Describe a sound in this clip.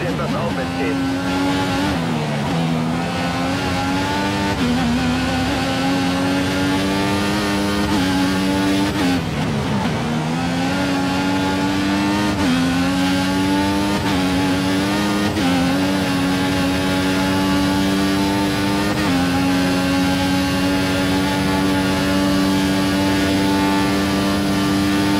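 A racing car engine screams, rising in pitch through the gears and dropping when braking.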